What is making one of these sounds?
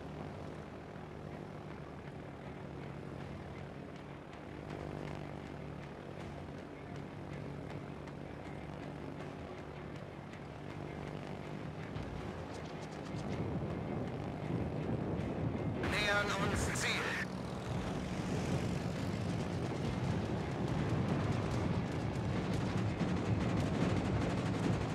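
Aircraft engines drone steadily.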